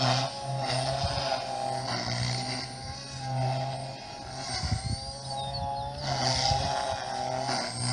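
A model airplane engine whines overhead, its pitch rising and falling as it passes.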